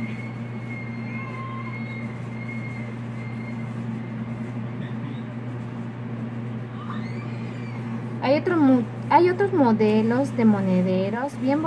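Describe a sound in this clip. Thread rustles softly as it is pulled through crocheted fabric.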